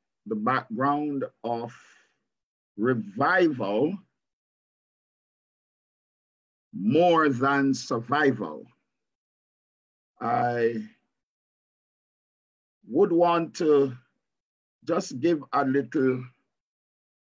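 A middle-aged man speaks calmly in bursts with pauses, heard through an online call.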